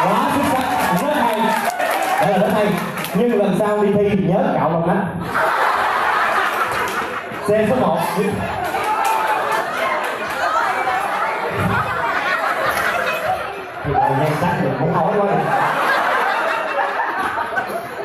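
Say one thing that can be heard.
A man sings loudly through a microphone and loudspeakers in an echoing hall.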